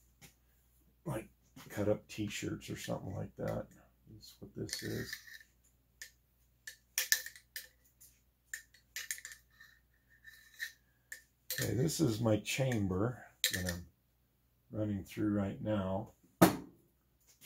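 Metal parts click and clack as a rifle is handled.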